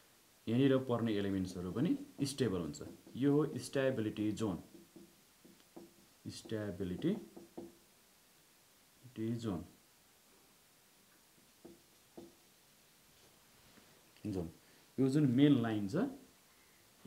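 A man speaks calmly, as if explaining, close by.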